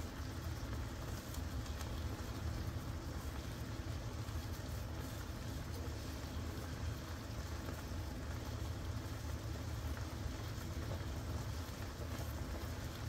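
Meat sizzles and bubbles steadily in a hot pan.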